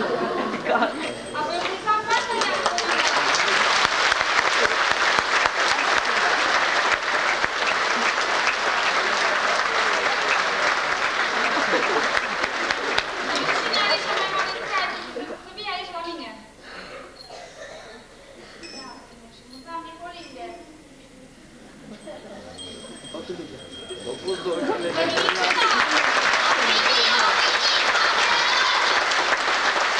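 A group of children sings together in a large hall.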